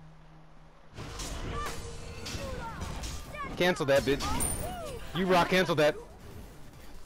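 Magic spells crackle and burst in a game fight.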